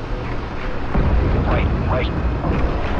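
A muffled underwater explosion booms.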